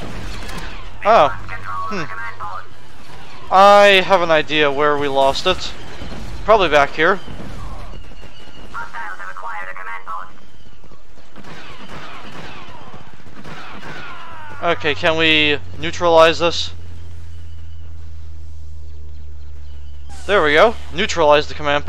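Laser blasters fire in quick, sweeping bursts.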